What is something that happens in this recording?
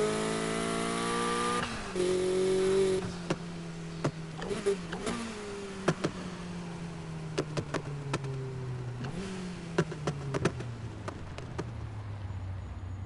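A car engine revs high and then winds down as the car slows.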